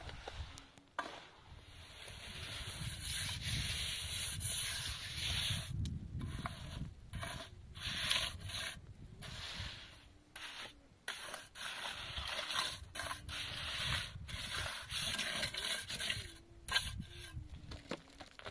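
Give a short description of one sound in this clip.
Hands scrape and brush grit across a rough roof surface.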